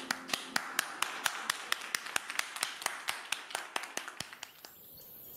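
A woman claps her hands at a steady pace.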